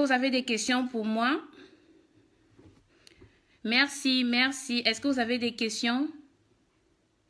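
A young woman speaks with animation, close to the microphone.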